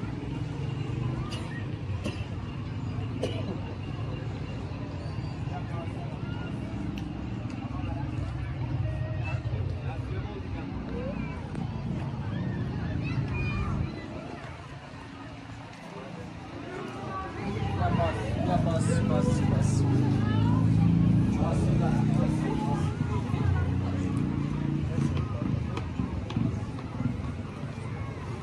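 People chatter faintly in the distance outdoors.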